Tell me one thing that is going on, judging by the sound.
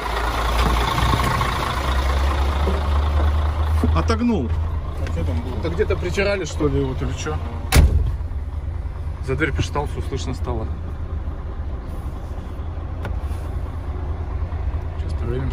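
A truck's diesel engine idles with a steady low rumble.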